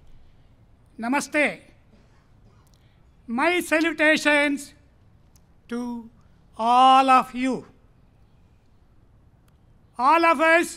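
A man chants slowly into a microphone, in long drawn-out phrases with pauses.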